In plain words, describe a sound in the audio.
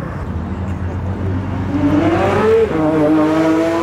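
A car engine roars as it speeds past close by.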